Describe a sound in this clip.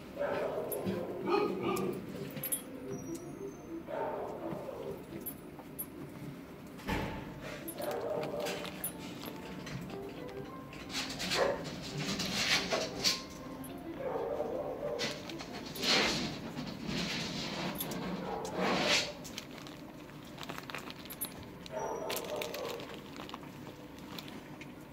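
A man talks softly to a dog close by.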